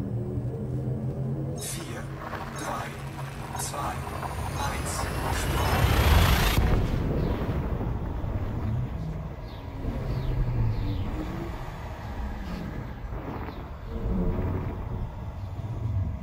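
A spaceship's engines hum low and steady.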